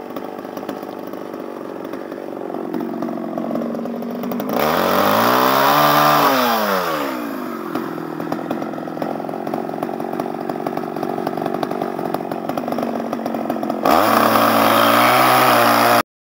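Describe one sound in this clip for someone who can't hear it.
A chainsaw idles.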